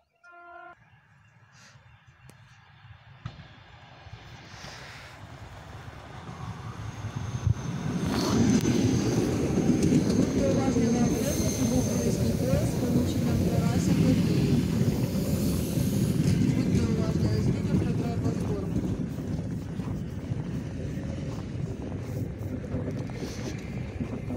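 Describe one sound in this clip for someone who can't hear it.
An electric train approaches and rumbles past close by, its wheels clattering on the rails.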